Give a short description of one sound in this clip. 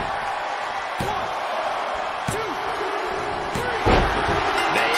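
A referee slaps the mat three times.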